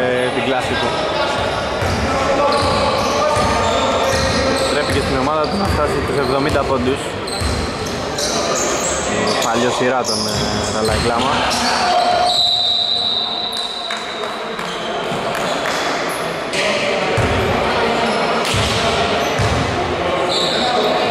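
Young men shout to each other across the echoing hall.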